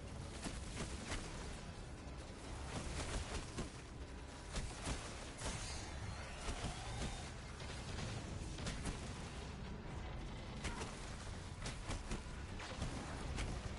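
Crackling energy blasts zap and strike nearby, faint and sharp.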